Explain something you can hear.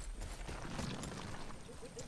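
An axe strikes against wood.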